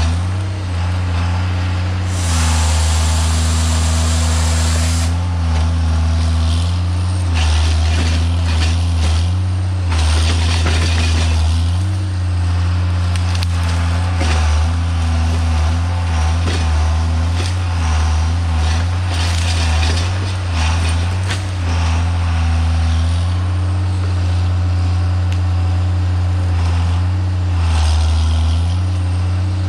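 A heavy diesel engine drones steadily close by.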